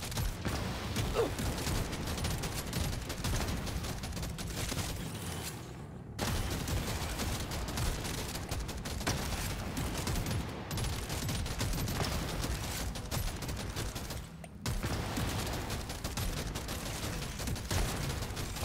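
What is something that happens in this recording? Small explosions burst now and then.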